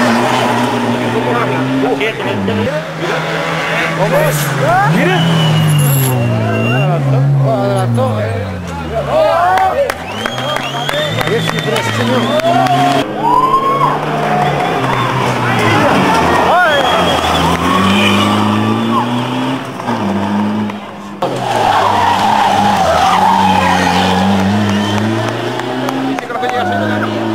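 A rally car engine revs hard and shifts gears as it speeds through bends.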